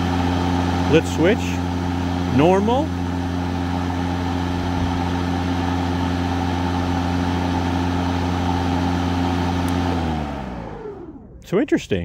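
An electric lawn mower motor hums steadily, then winds down and stops.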